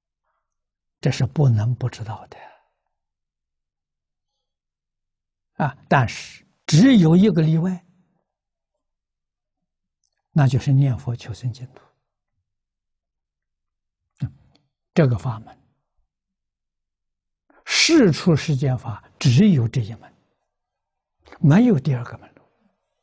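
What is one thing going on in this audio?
An elderly man speaks calmly, with pauses, close to a microphone.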